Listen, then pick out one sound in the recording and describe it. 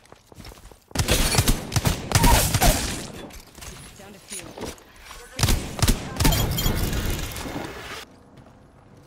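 Rapid gunshots crack in a video game.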